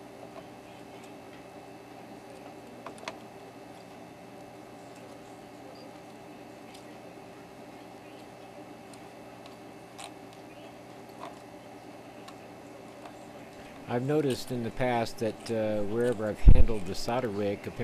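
A soldering iron hisses faintly against melting solder.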